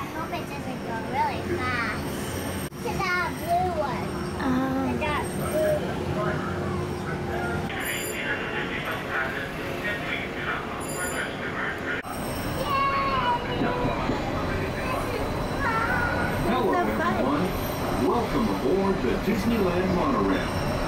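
A young girl talks and laughs excitedly close by.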